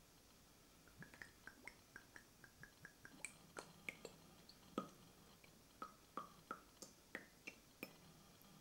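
Liquid trickles and drips into a glass jar.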